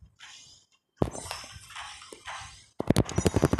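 Electronic game sound effects chime and thud.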